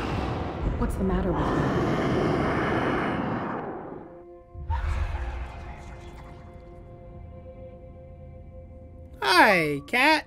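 A young woman asks a question with concern.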